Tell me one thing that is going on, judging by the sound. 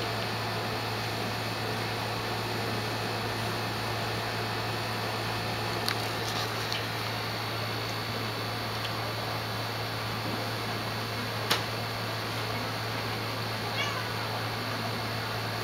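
A cat scratches and paws at a wooden drawer.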